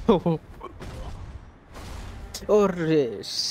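A heavy impact thuds.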